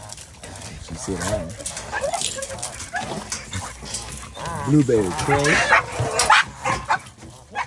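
A dog whines and yelps excitedly.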